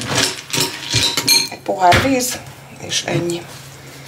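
A spoon clinks and stirs in a bowl of cereal.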